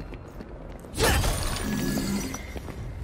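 Sparks crackle and burst with a whoosh.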